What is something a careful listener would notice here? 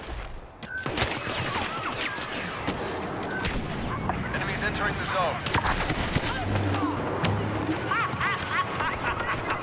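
Laser bolts zip and whine past.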